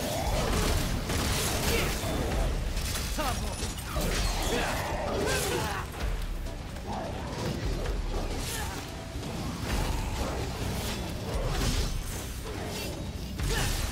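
Swords slash and clang against monsters in a fast fight.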